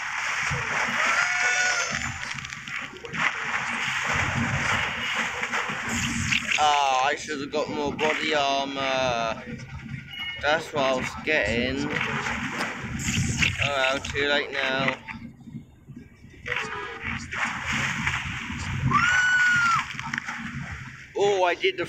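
Water splashes as a shark leaps out of the sea and dives back in.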